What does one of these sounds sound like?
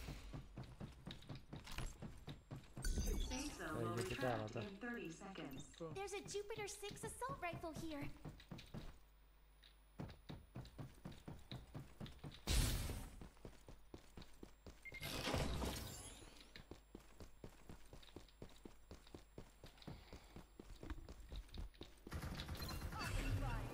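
Quick footsteps patter steadily on a hard floor.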